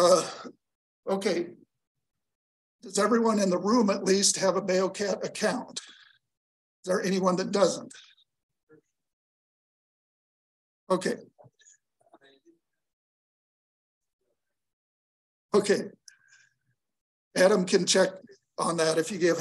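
A man speaks calmly through a microphone, in bursts with pauses.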